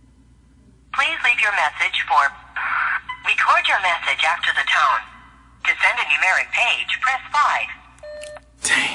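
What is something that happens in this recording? A man talks on a phone, close by, in a low, animated voice.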